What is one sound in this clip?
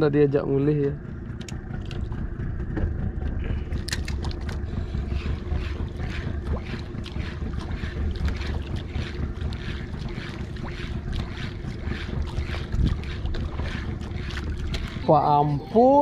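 A fishing reel clicks rapidly as its line is wound in.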